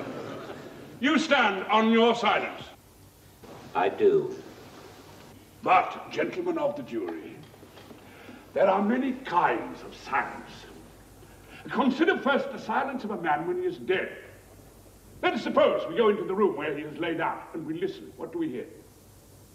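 A man speaks loudly and forcefully in an echoing hall, with pauses between phrases.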